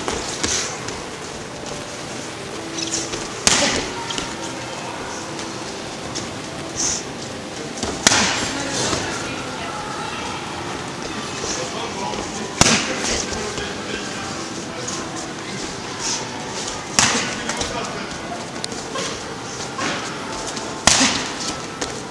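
Boxing gloves smack sharply against punch mitts.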